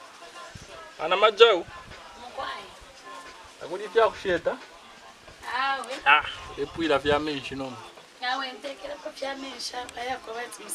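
A young man speaks in an upset voice close by.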